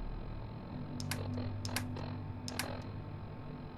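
A dial clicks as it turns.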